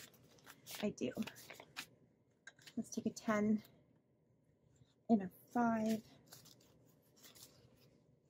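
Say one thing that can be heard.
Paper banknotes rustle and crinkle as they are handled.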